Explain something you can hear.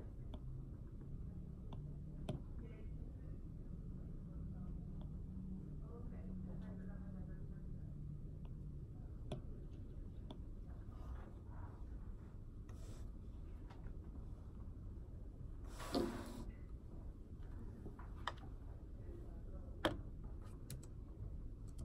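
A stylus taps lightly on a tablet.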